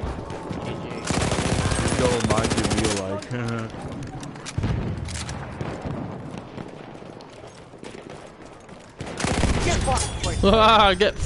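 Rapid gunfire bursts loudly nearby.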